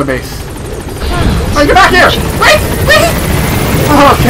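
A helicopter's rotor thumps loudly nearby.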